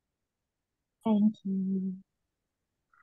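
A woman speaks a few words briefly over an online call.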